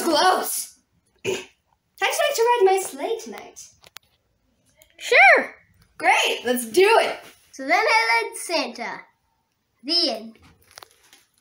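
A young boy speaks excitedly close by.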